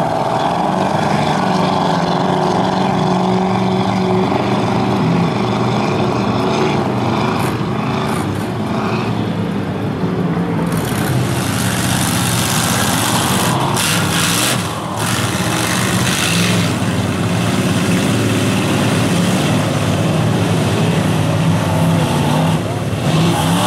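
Mud and water splash and spray under spinning tyres.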